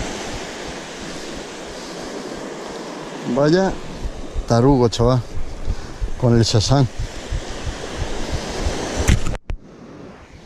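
Waves wash onto a beach in a steady rush.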